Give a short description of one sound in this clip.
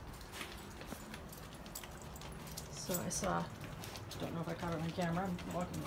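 A dog's claws tap on the floor.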